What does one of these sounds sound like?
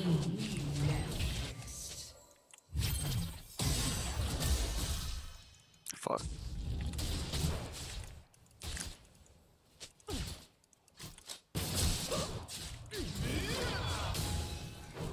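Magic spells whoosh and crackle amid a fantasy battle.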